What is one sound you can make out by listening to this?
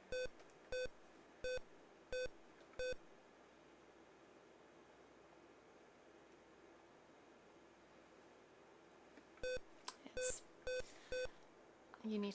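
Short electronic beeps sound from a video game.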